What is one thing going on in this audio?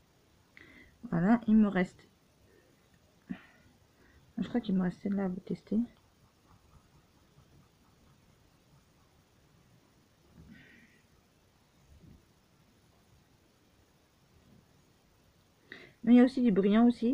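A woman speaks softly and briefly, close to a microphone, with long pauses.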